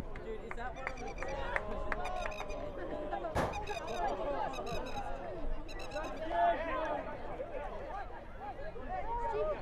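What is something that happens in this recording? Spectators chatter and call out from the sidelines.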